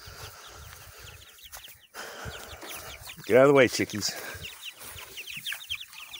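Young chicks cheep close by.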